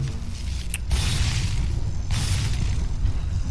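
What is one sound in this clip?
An electric bolt zaps and crackles.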